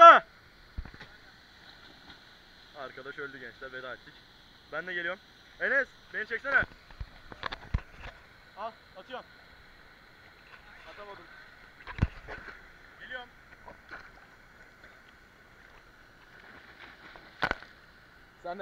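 A body splashes into deep water.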